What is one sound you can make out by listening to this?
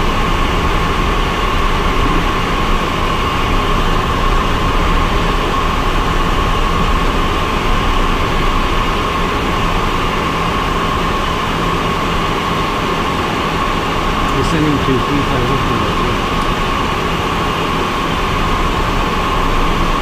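Wind rushes past a small plane in flight.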